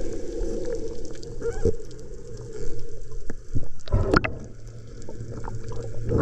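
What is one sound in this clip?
Air bubbles gurgle and rumble close by underwater.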